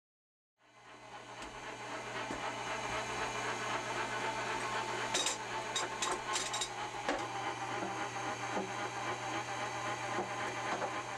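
A meat grinder hums steadily.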